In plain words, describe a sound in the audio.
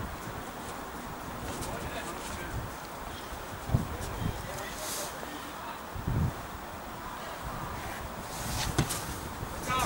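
Wind blows across an open field outdoors.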